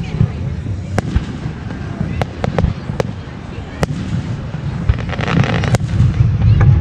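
Fireworks pop and crackle in the distance.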